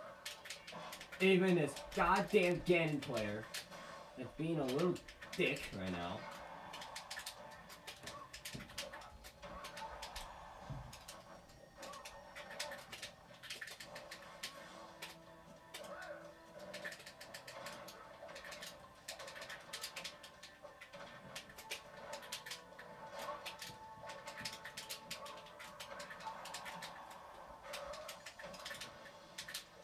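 Video game fight sounds of punches, blasts and whooshes play from a television's speakers.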